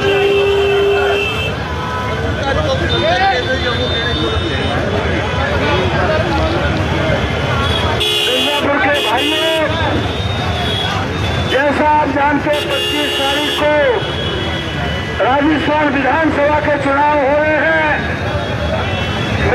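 A large crowd of men chants and shouts slogans loudly outdoors.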